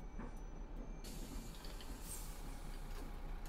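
Pneumatic bus doors hiss open.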